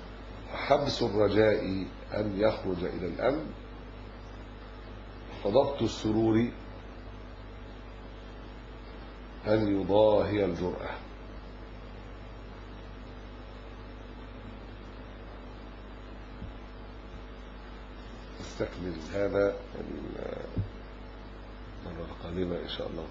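A middle-aged man speaks calmly into a microphone, in short bursts with long pauses.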